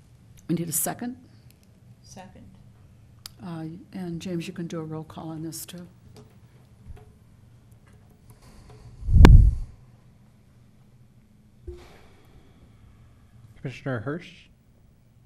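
A man speaks into a microphone in a room that echoes a little.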